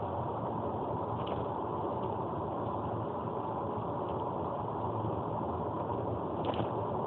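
A car's engine hums steadily as the car drives along a highway.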